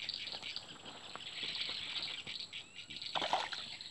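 Water splashes softly as a fish is released.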